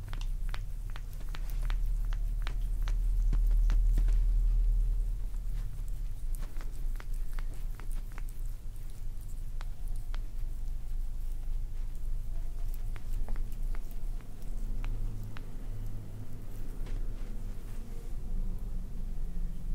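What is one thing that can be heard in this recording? Hands rub and squeeze a bare foot close to the microphone.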